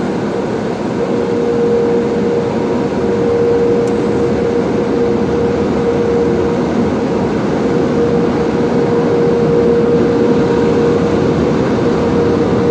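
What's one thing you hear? Powerful air dryers roar over a car.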